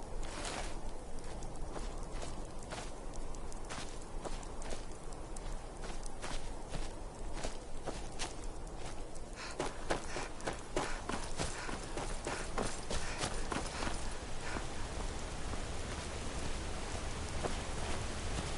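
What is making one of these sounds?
Footsteps crunch on gravel and grass at a steady walking pace.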